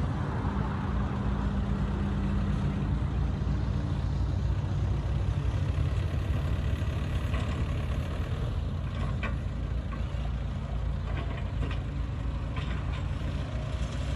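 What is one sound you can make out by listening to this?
A bulldozer engine rumbles steadily nearby.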